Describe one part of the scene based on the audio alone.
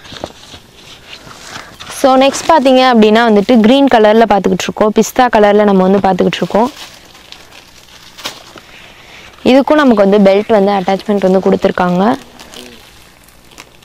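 Cloth rustles as garments are lifted and spread out.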